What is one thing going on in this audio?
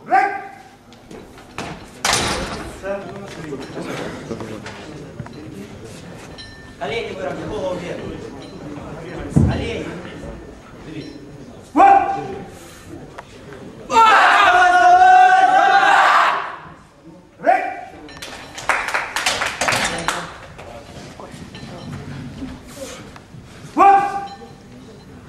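A man calls out a short, sharp command.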